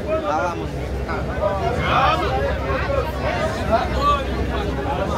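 A crowd of people talks and chatters loudly close by.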